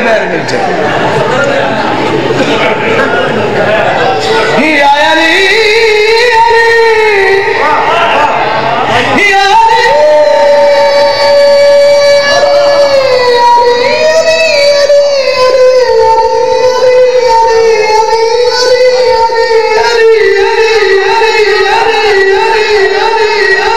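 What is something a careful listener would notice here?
A man sings a mournful lament loudly through a microphone.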